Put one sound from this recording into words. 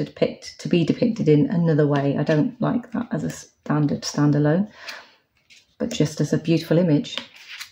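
A card is placed down and slides softly on a table.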